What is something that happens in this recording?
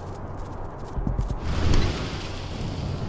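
Elevator doors slide shut with a rumble.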